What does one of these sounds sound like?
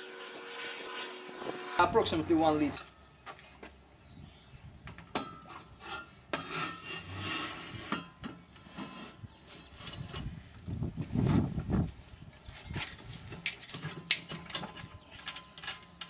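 Metal parts clank and knock as a container is lifted and set down.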